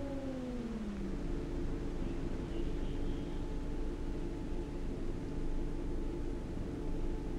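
A bus engine idles steadily.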